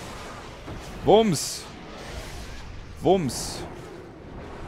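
Magic spell sounds ring out with a rising and falling tone and a hissing burst.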